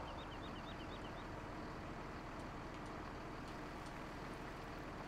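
A truck engine rumbles steadily as a truck drives slowly.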